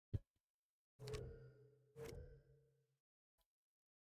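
Game sound effects chime as a card is picked up.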